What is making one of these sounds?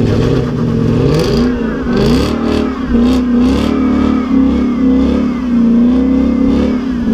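Tyres squeal and screech as they spin on tarmac.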